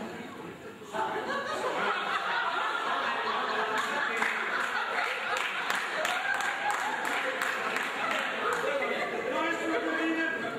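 A band plays lively music with a tuba and an accordion.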